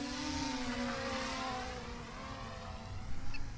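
A small electric motor of a toy car whines and winds down.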